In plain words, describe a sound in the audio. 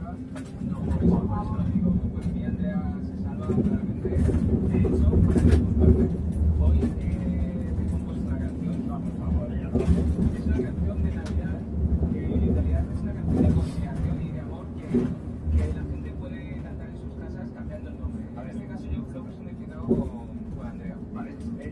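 The bus interior rattles and knocks over bumps.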